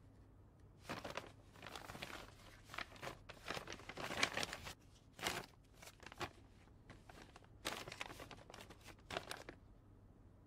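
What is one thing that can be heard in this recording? Paper rustles and crinkles as it is handled and folded.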